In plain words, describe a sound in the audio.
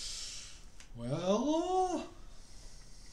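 A man makes a drawn-out, rising exclamation close to a microphone.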